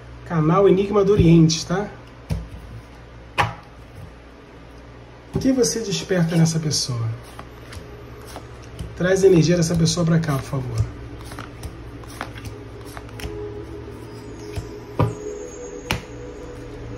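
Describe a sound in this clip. Cards are laid down on a table with soft taps.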